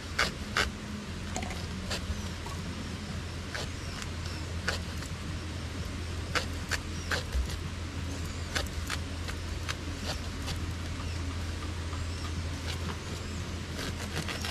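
Dry bamboo twigs and leaves rustle and snap as a hand moves through them.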